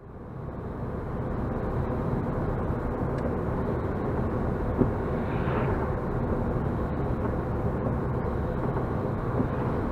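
Tyres hiss on wet asphalt, heard from inside a car.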